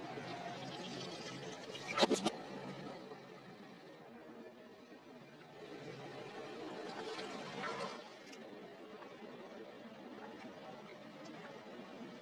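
Liquid squelches and splashes under a rolling tyre.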